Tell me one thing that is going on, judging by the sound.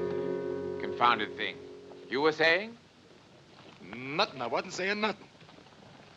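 A man answers calmly close by.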